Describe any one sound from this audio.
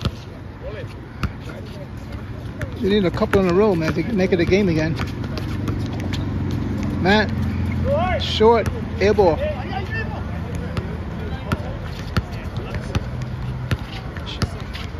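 A basketball bounces on hard court with sharp thuds.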